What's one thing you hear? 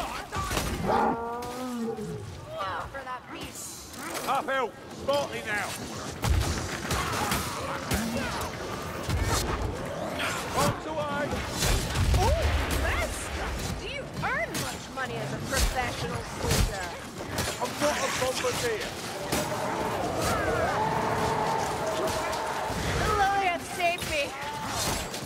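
Blades slash and thud into bodies in quick, repeated blows.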